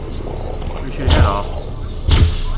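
An explosion bursts with a fizzing crackle.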